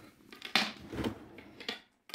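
A drawer slides open and knocks.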